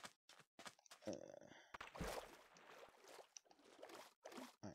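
Water splashes and gurgles.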